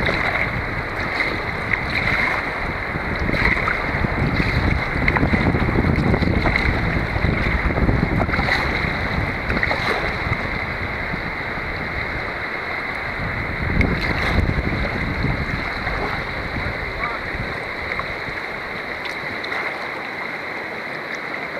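Wind buffets loudly outdoors on open water.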